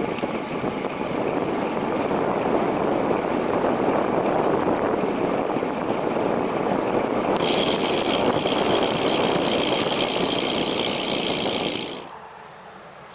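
Wind roars loudly against a moving bicycle rider.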